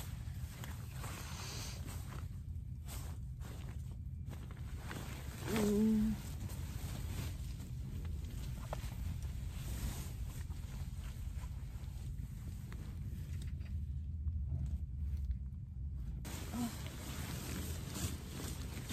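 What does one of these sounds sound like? Fabric rustles close by.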